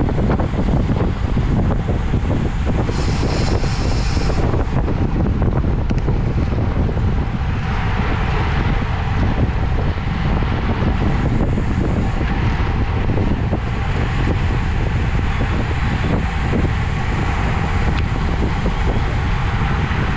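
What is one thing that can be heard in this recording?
Wind buffets loudly against a moving bicycle.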